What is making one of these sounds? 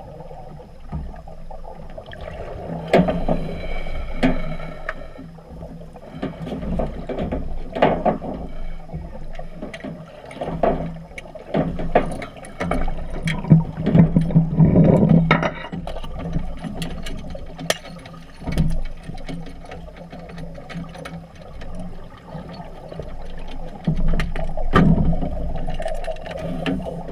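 A scuba diver breathes through a regulator underwater, with bursts of rushing bubbles.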